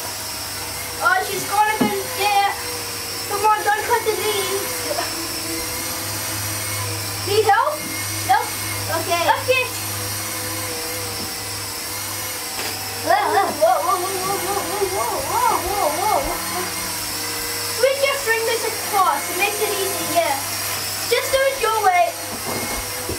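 A young child speaks and exclaims excitedly nearby.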